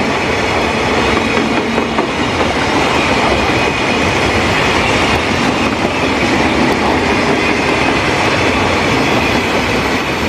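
Train wheels clatter and squeal on the rails.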